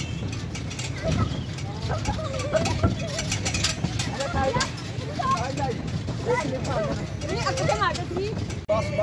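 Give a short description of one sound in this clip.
Feet thump on a bouncing trampoline.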